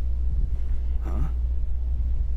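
A man answers with a short, puzzled grunt.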